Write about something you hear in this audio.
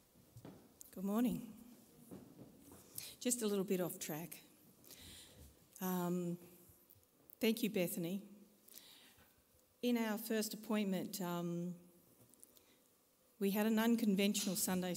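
A man speaks steadily through a microphone in an echoing hall.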